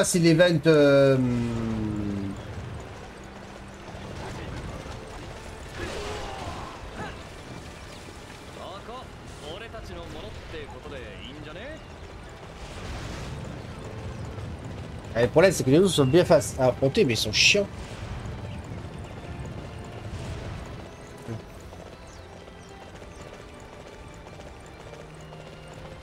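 A horse's hooves thud at a gallop.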